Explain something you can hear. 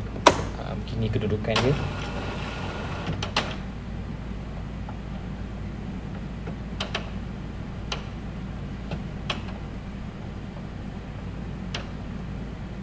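A printer's mechanism clicks now and then.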